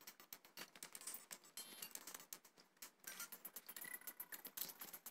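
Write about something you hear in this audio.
Quick game sound effects tick and chime rapidly as a sword swings.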